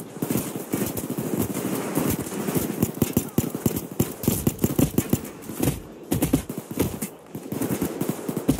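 Pistol shots fire in rapid bursts.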